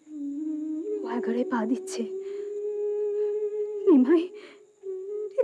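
A middle-aged woman speaks tearfully in distress.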